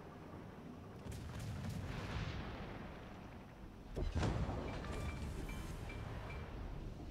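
Shells explode with heavy thuds.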